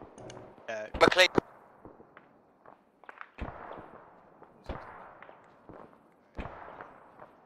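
Gunshots crack in short bursts at a distance.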